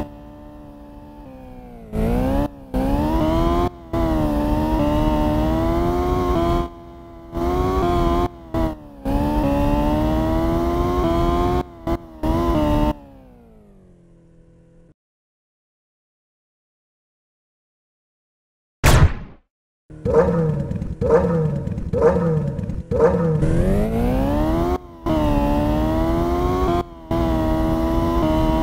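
A racing car engine revs loudly, rising and falling in pitch as the car speeds up.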